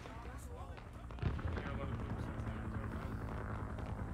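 Gunshots crack in the distance.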